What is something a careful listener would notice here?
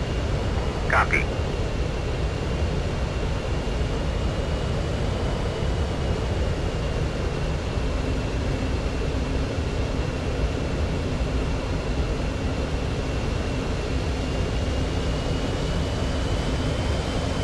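A jet engine rumbles and whines steadily.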